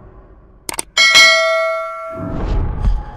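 A low, ringing musical chord sounds, then fades.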